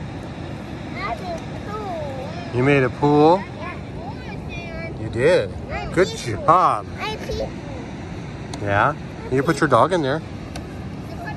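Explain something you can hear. A little girl babbles and squeals close by.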